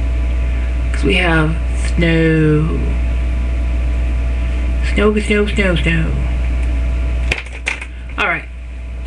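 A middle-aged woman speaks in short phrases close to a microphone.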